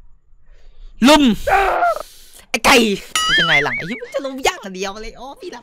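A young man speaks excitedly into a close microphone.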